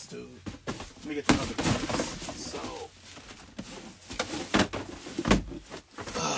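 Cardboard boxes knock and scrape as they are shifted about.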